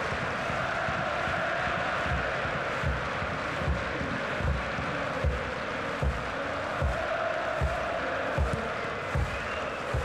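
A large stadium crowd chants and sings loudly and steadily, outdoors.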